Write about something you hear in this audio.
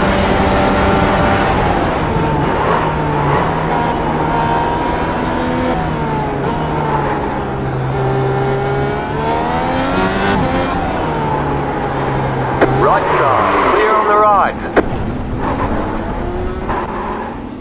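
A racing car engine roars, its pitch rising and falling with gear changes.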